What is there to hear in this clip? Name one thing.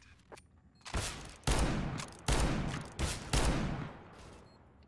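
Gunfire cracks in loud bursts.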